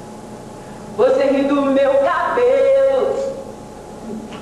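A young woman sings loudly nearby, holding long notes.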